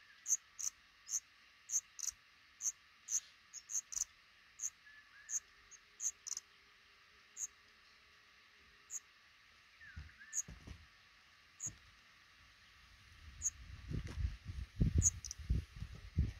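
Baby birds cheep in quick, high, thin peeps.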